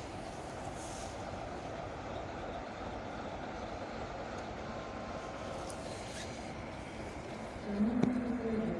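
A diesel shunting locomotive rumbles as it pushes a train.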